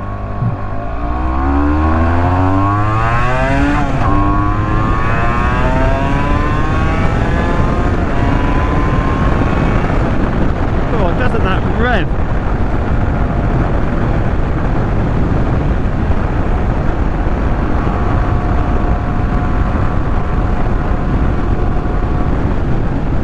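Wind roars past the rider.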